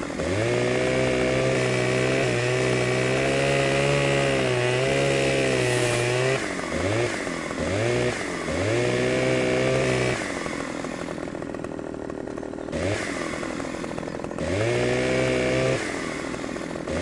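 A chainsaw engine revs loudly, rising and falling between bursts of cutting.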